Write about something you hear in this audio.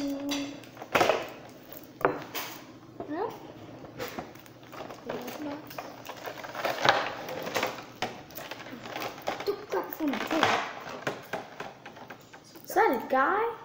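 Cardboard and plastic packaging rustles and crinkles as a box is opened.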